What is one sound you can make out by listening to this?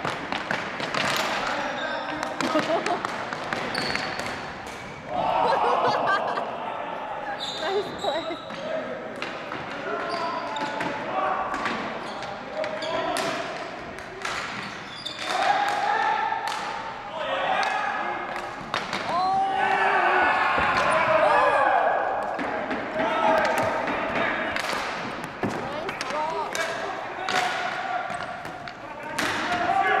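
Hockey sticks clack against a ball and the floor in a large echoing hall.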